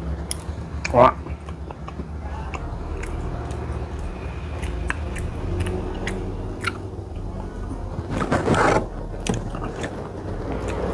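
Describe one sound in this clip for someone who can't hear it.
A man chews food with wet, smacking sounds.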